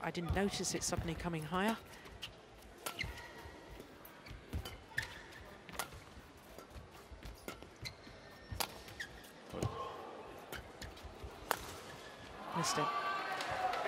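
Shoes squeak sharply on a hard court.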